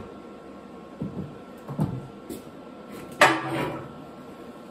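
Metal pieces clank and knock together.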